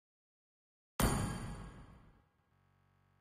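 A game's sound effect hits with a sudden swoosh and fades.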